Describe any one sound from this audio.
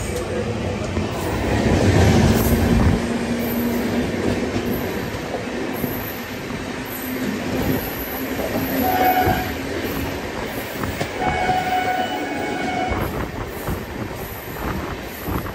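A passing train rumbles and clatters loudly close by.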